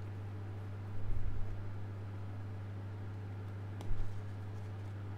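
Cards slide and tap softly on a tabletop.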